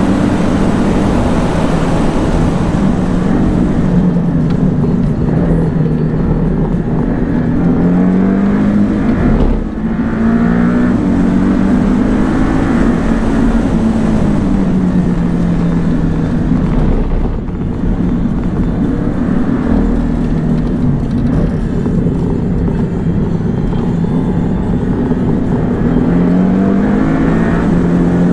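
Tyres rumble loudly on the road.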